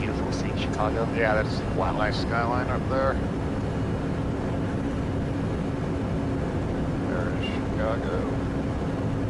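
A man speaks briefly over a headset intercom.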